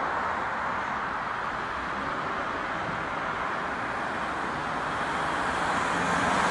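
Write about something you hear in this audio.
A train rumbles steadily along the tracks close by.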